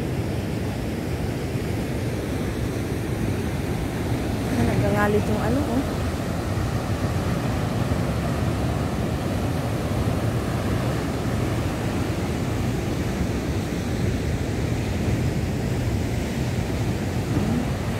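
Waves crash and churn against the shore.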